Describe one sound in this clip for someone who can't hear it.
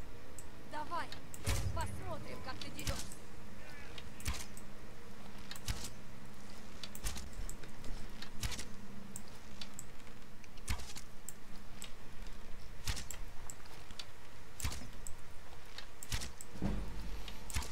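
Arrows thud into a body at close range.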